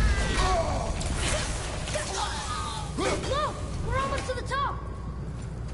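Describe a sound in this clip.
An axe strikes and clangs against metal.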